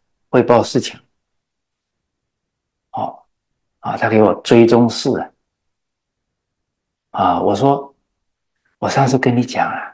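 An elderly man speaks calmly and warmly into a close microphone, in short phrases with pauses.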